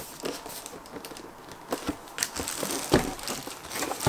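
A cardboard box slides and scrapes on a table.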